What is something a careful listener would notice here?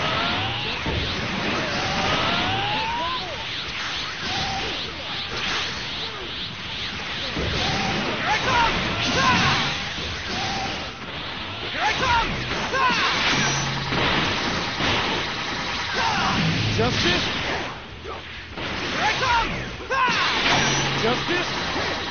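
Energy blasts whoosh and explode in a fast fight.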